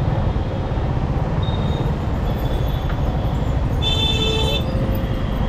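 A car engine rumbles steadily at low speed.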